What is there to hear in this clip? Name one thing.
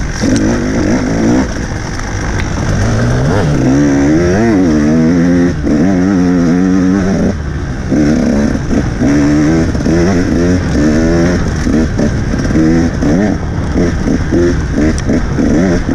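Tyres rumble and crunch over a bumpy dirt trail.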